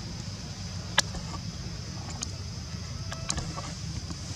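A monkey's feet scrabble on a wall.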